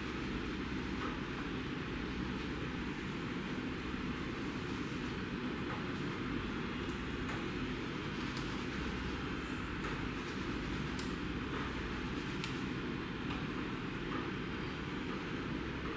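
A towel rubs and rustles against wet hair.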